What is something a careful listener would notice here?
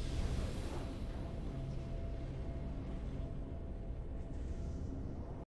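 Triumphant game music plays.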